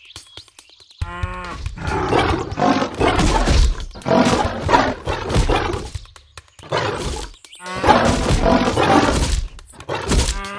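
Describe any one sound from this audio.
A big cat growls and snarls while fighting.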